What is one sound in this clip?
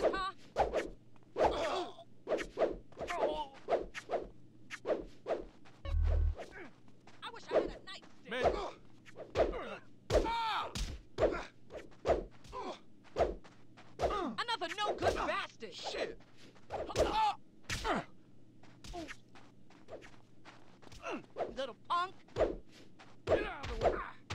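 Blows thud as fighters strike each other with a bat.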